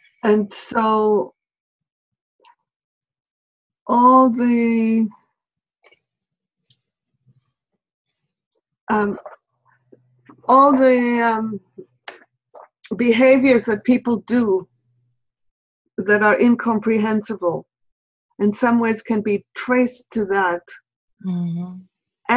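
A middle-aged woman talks with animation over an online call.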